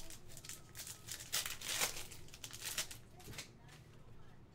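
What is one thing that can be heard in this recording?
A foil card pack crinkles and tears open.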